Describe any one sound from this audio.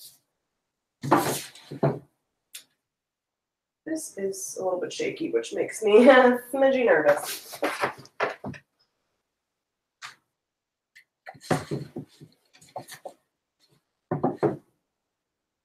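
Books knock and slide onto a wooden shelf.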